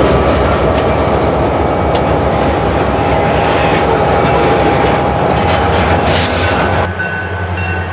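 Freight cars rumble and clatter past on the rails.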